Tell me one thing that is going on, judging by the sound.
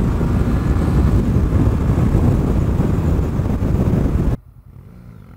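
Wind roars loudly past a fast-moving motorcycle.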